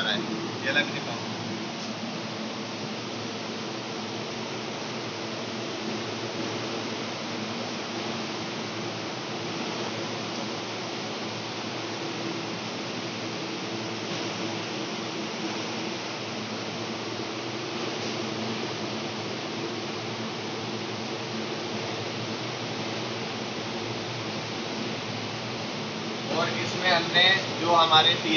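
Cooling fans hum steadily.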